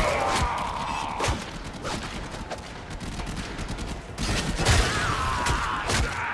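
A blade swishes and slashes in quick blows.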